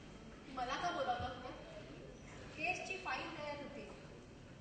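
An adult woman speaks loudly and forcefully.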